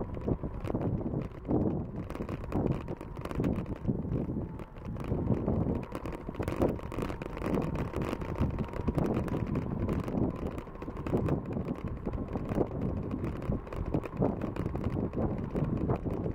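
Bicycle tyres roll steadily over smooth pavement.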